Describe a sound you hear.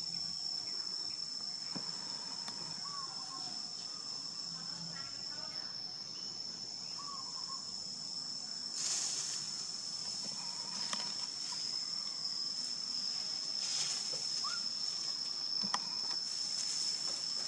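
Dry leaves rustle as a baby monkey crawls and scampers.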